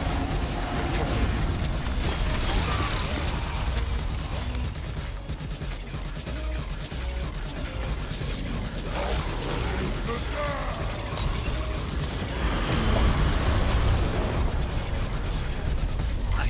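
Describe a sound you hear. Magical blasts and explosions crackle and boom.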